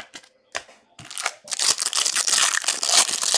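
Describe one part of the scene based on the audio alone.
Plastic wrapping crinkles and tears as hands open a pack.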